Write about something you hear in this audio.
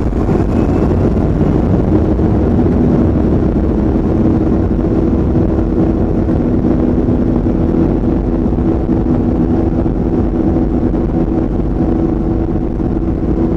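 Jet engines roar steadily inside a plane's cabin.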